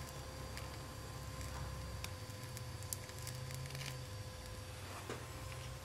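A gas torch hisses steadily.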